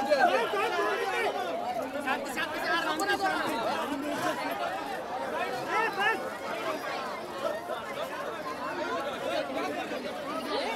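A crowd of men and women shout and chatter excitedly close by.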